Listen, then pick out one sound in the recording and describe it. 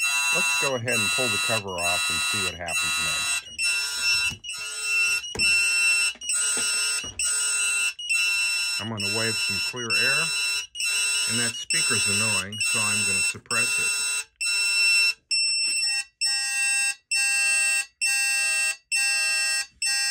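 An electronic detector beeps in rapid, steady pulses.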